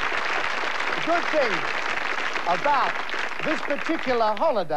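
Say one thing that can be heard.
A middle-aged man speaks cheerfully into a microphone.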